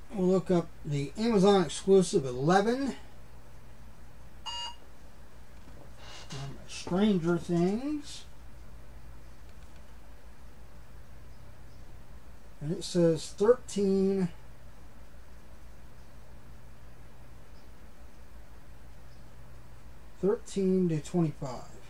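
A middle-aged man talks calmly close to the microphone, in short bursts.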